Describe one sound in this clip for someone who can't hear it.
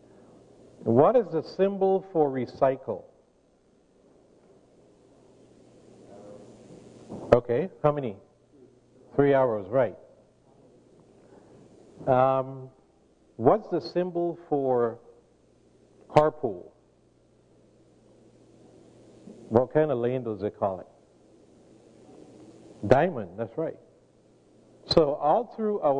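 A man speaks in bursts through a microphone in a large echoing hall.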